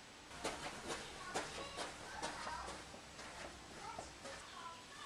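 Footsteps thud quickly on a hard floor indoors.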